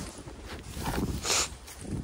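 Boots crunch on icy snow.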